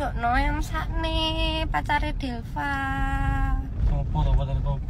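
A young woman laughs loudly, close to a phone microphone.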